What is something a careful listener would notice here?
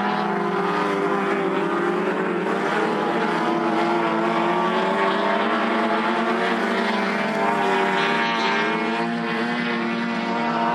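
Car engines roar loudly as cars race.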